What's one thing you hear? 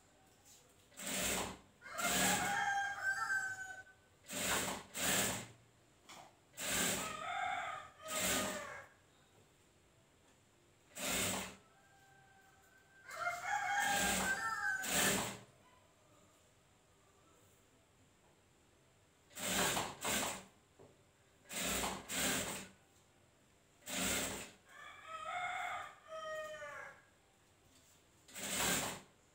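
A sewing machine runs in short, loud bursts.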